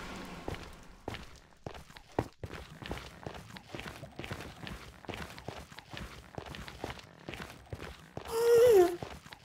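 Blocks crunch and crumble as they are dug away, one after another.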